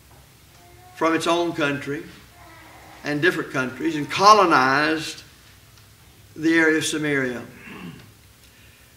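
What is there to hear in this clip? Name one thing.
An elderly man speaks slowly and earnestly into a microphone, pausing between phrases.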